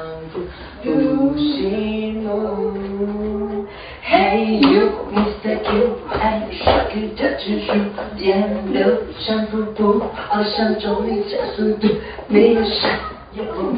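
A young woman sings loudly into a microphone.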